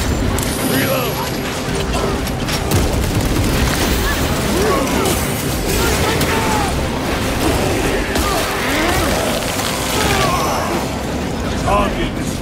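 Creatures screech and shriek.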